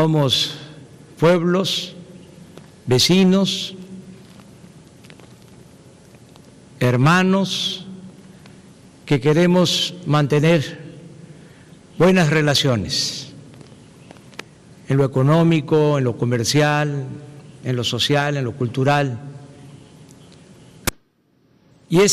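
An older man speaks slowly and calmly into a microphone, in short phrases with pauses.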